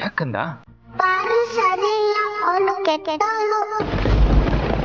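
A young girl speaks in a high, pleading voice.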